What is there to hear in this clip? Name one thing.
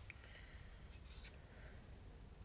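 A paper card slides and is lifted from a table.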